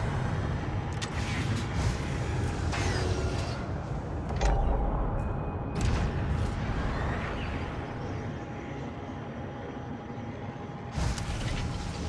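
Whooshing rushes swell as a spacecraft boosts to high speed.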